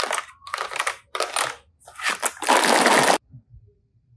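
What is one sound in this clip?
Plastic toys rattle and clatter against each other.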